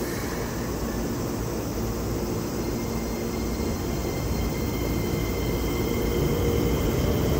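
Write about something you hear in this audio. A train pulls slowly away from the platform with a rising electric whine.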